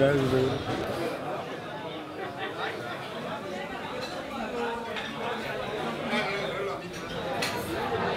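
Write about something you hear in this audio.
A crowd chatters and murmurs indoors.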